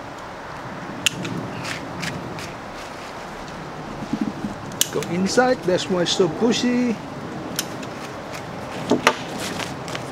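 Pruning shears snip twigs with sharp clicks.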